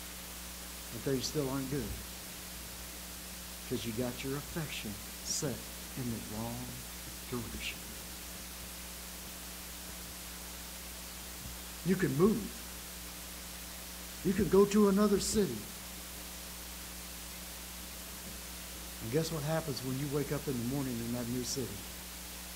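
An elderly man speaks calmly through a microphone, pausing between phrases.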